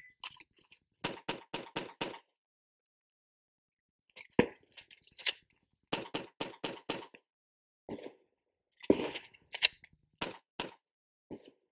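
A man fires a pistol in rapid shots outdoors.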